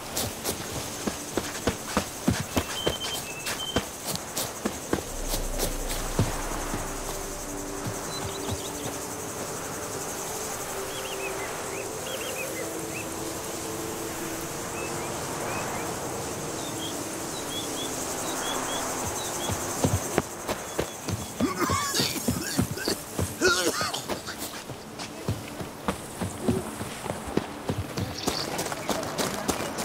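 Footsteps run quickly along a dirt path.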